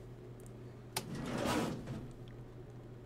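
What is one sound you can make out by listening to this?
A metal filing cabinet drawer slides open with a scrape.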